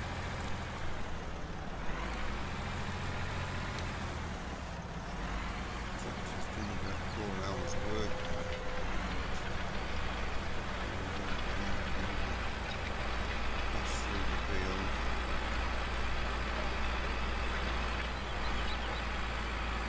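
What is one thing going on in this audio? A disc harrow rattles and scrapes through the soil.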